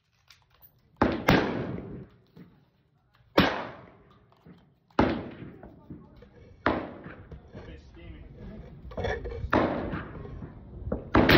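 Gunshots bang loudly nearby and echo under a low roof.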